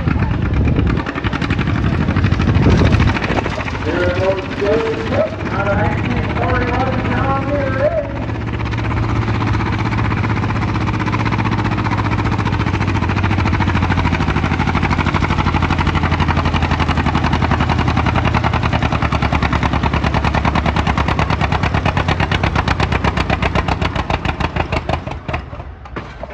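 A tractor engine roars loudly and steadily, then dies down.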